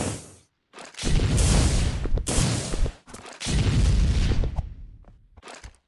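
A molotov bottle bursts into roaring flames.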